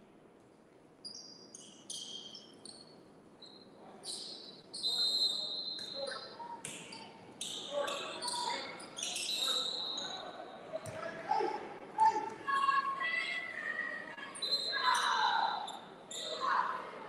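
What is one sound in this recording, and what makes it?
Sneakers squeak sharply on a wooden gym floor.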